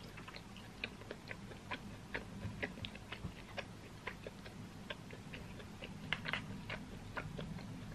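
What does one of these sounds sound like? Chopsticks click against a plastic food container.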